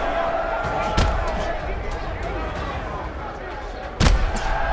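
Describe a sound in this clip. Punches thud heavily against a body.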